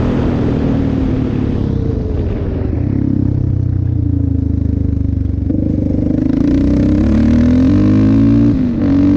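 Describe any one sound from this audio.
A quad bike engine slows down and then revs up again.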